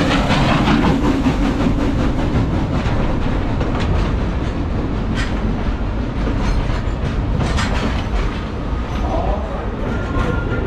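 A small train rumbles along its track.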